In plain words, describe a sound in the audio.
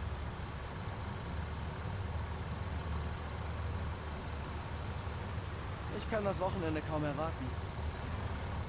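A heavy truck engine rumbles steadily at low speed.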